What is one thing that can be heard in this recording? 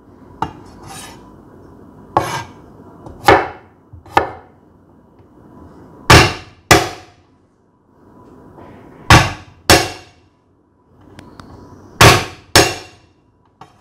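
A heavy cleaver smashes down on a wooden board with loud thuds.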